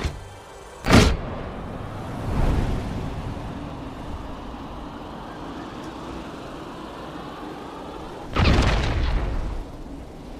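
Wind rushes steadily during a long glide through the air.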